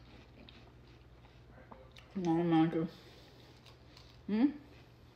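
Wet watermelon pieces squish as fingers grab them.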